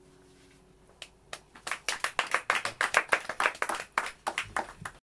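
An acoustic guitar is strummed and plucked close by, with quick bright notes.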